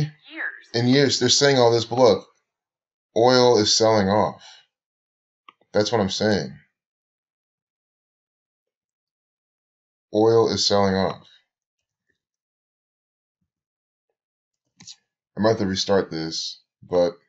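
A young man talks calmly into a nearby microphone, in short bursts with pauses.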